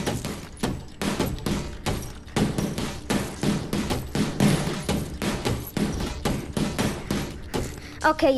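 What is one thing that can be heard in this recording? Punches thud against a punching bag in quick succession.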